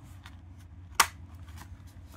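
A craft punch snaps sharply through card.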